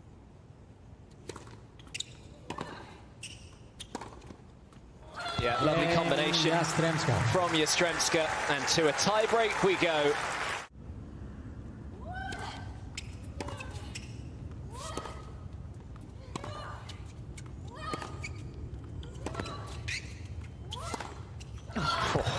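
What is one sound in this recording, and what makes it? Tennis rackets strike a ball with sharp pops in a rally.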